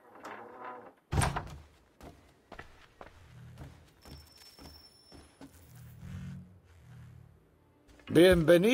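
Footsteps thud on a wooden floor indoors.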